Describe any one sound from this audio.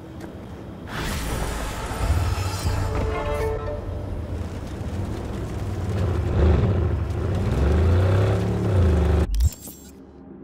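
A car engine rumbles and revs while driving.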